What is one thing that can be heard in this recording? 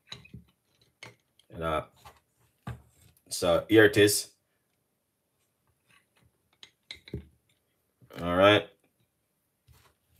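A wooden spoon scrapes food from a metal pot.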